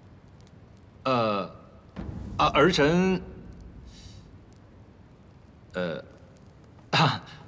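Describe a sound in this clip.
A middle-aged man speaks hesitantly, with short pauses.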